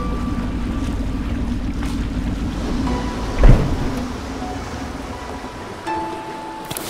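A motorboat engine hums steadily as the boat moves through water.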